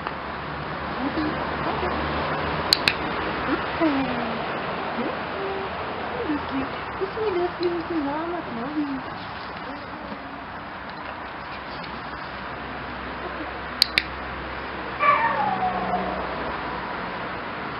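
A young woman talks softly and cheerfully to a puppy nearby.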